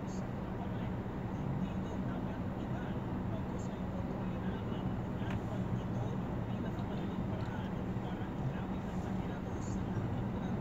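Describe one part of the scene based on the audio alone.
A vehicle's engine idles with a low, steady rumble close by.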